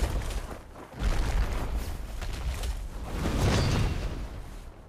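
A huge creature collapses with a deep thud.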